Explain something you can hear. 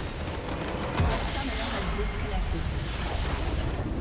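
A deep magical blast booms and crackles.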